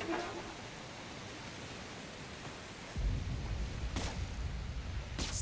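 Steam hisses steadily from a burst pipe.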